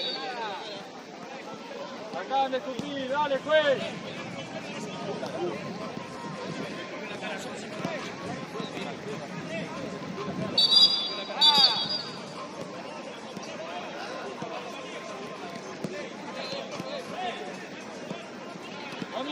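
A crowd of spectators chats on the sideline nearby.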